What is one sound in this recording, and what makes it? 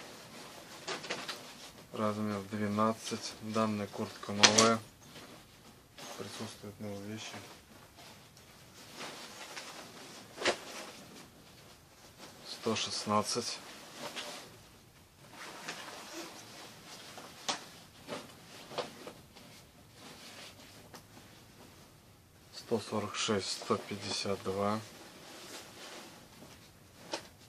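Puffy nylon jackets rustle and crinkle as hands handle them.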